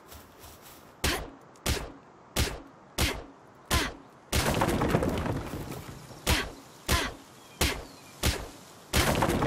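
An axe chops into wood with sharp, regular thuds.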